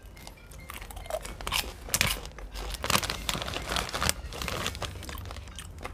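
A young man crunches popcorn while chewing.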